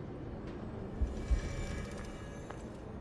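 A magical burst whooshes and crackles with a deep thud.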